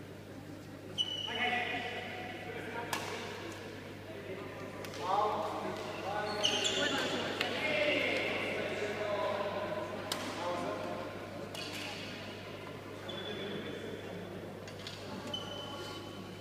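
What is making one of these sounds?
Shoes squeak on a sports floor.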